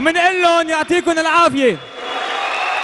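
A man announces loudly and drawn-out over loudspeakers in a large echoing arena.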